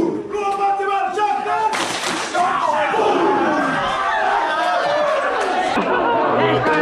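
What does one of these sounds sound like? A group of young men chant and sing loudly together.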